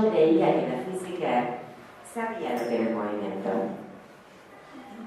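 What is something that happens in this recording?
A woman speaks with animation into a microphone, heard through a loudspeaker in a hall.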